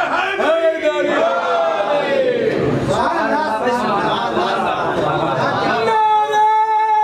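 A young man chants a mournful lament loudly into a microphone.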